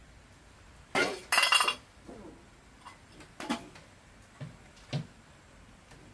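Wooden boards knock and clatter.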